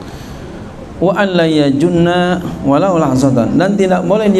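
A middle-aged man speaks into a microphone in a slow, chanting voice.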